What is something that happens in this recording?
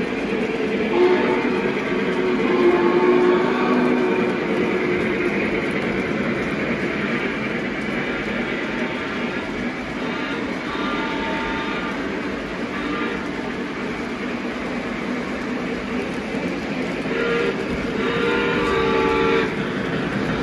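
A model train horn sounds in several short blasts.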